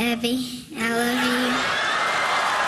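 A young boy speaks into a microphone.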